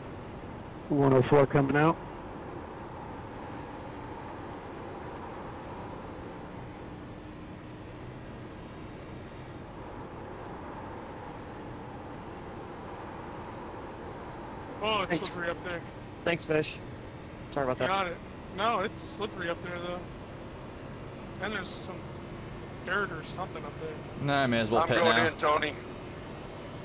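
A man talks with animation, close to a headset microphone.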